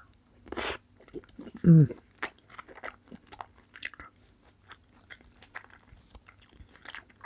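A young woman chews a sushi roll wetly close to a microphone.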